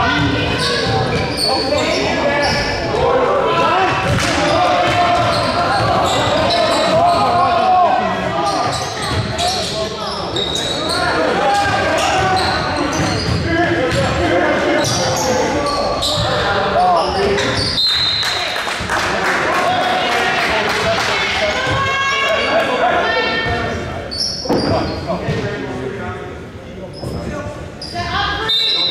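A crowd of spectators cheers and talks loudly in a large echoing gym.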